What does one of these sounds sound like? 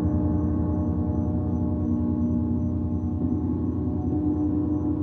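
A singing bowl rings with a sustained pure tone.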